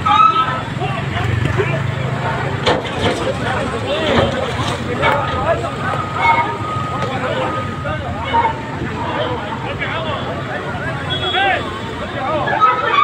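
A heavy loader's diesel engine rumbles and revs.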